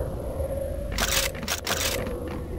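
Gunfire bursts out in short blasts.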